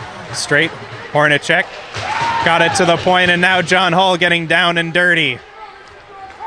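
Spectators shout and cheer loudly nearby in a large echoing rink.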